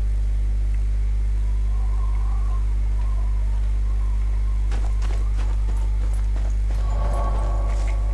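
Footsteps crunch on grass and gravel.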